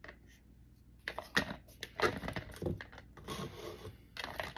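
Small gravel pours and rattles into a plastic tub.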